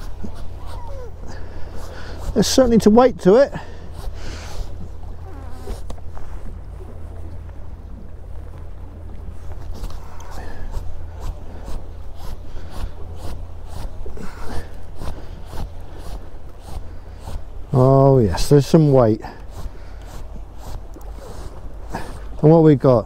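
Choppy water splashes against a boat hull.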